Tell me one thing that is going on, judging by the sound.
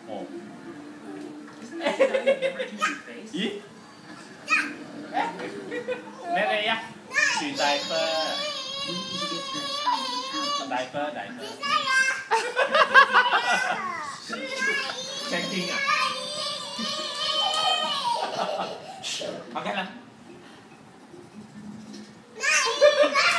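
Young children laugh and squeal close by.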